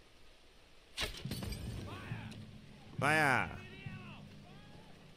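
A fire bursts into flames with a loud whoosh and crackles.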